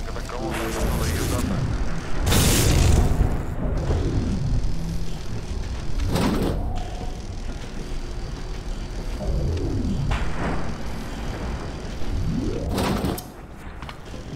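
Electricity crackles and buzzes in short bursts.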